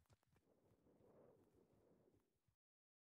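A magical burst whooshes briefly.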